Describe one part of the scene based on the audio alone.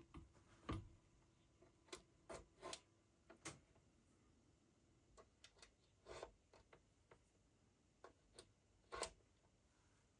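Metal cable plugs click and scrape as they are pushed into sockets.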